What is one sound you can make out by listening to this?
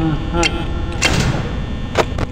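A heavy metal door slams shut.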